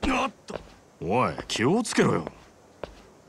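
A man speaks in a sharp, raised voice.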